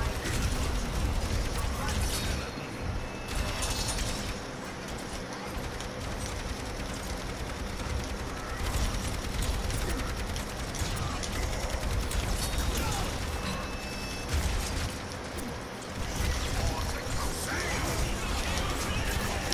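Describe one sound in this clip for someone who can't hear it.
Rapid gunfire and blasts crackle from a video game.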